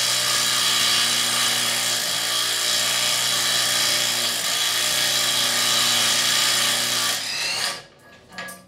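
A cordless drill whirs steadily at high speed, then winds down.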